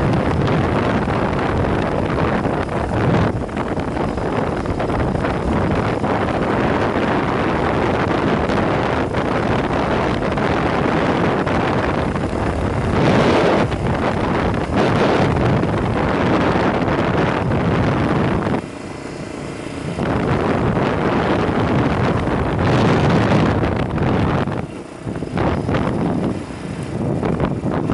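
Wind roars loudly against a helmet.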